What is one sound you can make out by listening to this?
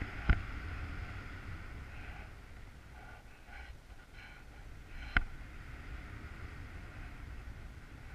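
Wind rushes steadily past in the open air.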